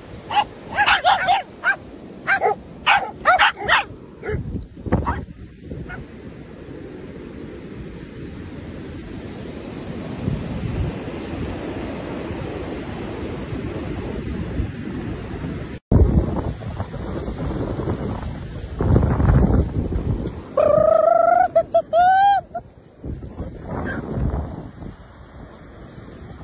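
Wind blows outdoors into the microphone.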